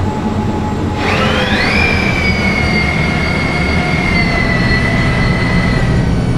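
A bus's motor whines, rising in pitch as the bus speeds up.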